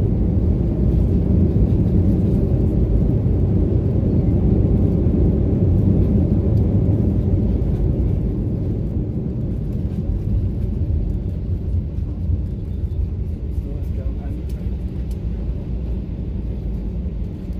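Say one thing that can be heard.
Tyres rumble and thump over the runway.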